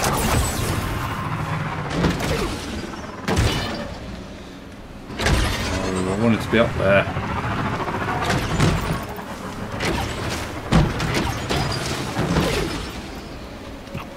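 A hover bike engine roars and whines as it speeds along.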